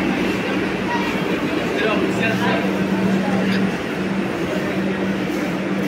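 A stationary train hums steadily nearby.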